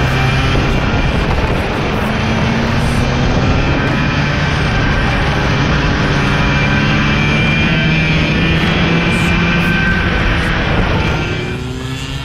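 A go-kart engine roars loudly up close.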